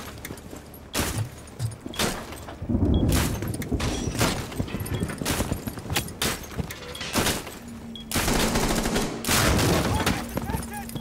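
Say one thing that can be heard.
Gunshots crack sharply, one after another.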